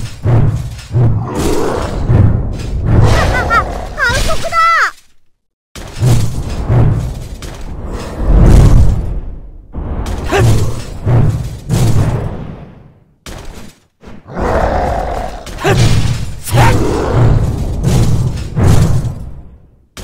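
Heavy blows thud with deep booms.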